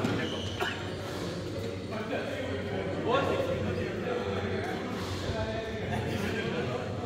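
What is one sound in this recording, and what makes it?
Players call out to one another in a large echoing hall.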